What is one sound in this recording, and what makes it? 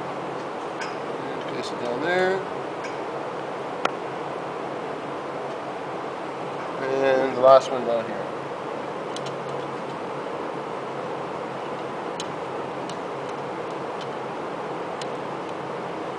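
Metal engine parts clink softly as they are handled.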